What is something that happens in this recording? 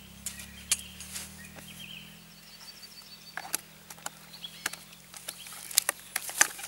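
A plastic bucket knocks and rattles.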